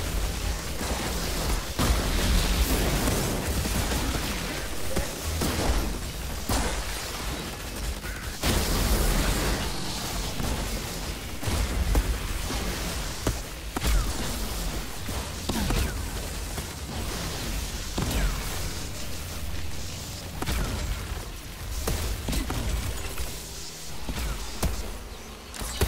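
Gunfire and energy blasts crackle and boom in a fierce game battle.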